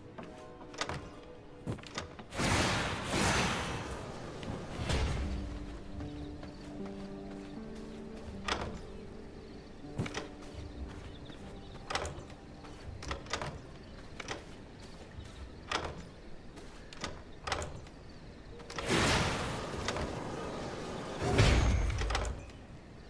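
Short, soft clicks sound again and again as items are picked up and moved.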